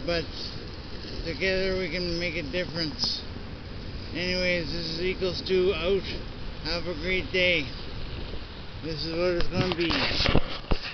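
A middle-aged man talks calmly and close to the microphone.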